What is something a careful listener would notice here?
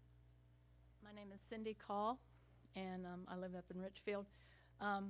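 A middle-aged woman speaks into a microphone, reading out calmly.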